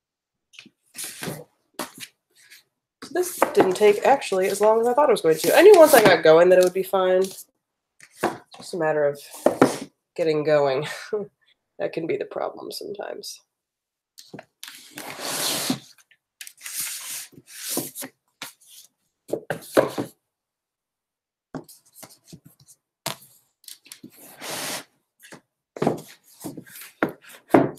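Books rustle and knock against a shelf.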